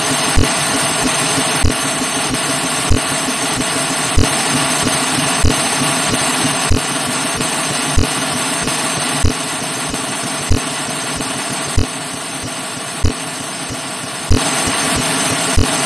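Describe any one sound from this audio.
Feet splash in a muddy puddle again and again.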